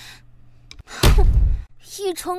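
A young woman scoffs with a short huff.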